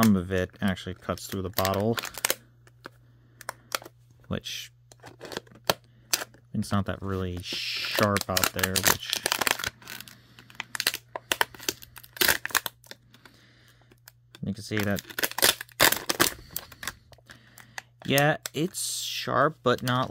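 A plastic bottle crinkles as hands squeeze it.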